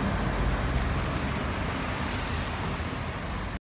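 Cars pass by on the street.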